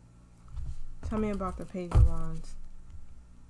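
A woman speaks briefly and calmly close by.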